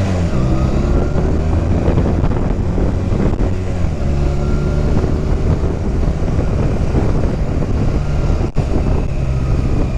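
Wind rushes past in a low steady roar.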